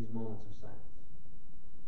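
A man speaks briefly.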